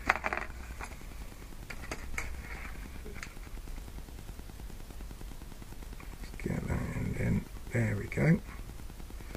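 Fishing line rustles and clicks softly between fingers.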